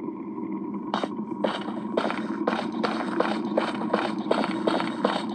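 A game character's footsteps thud in a steady rhythm.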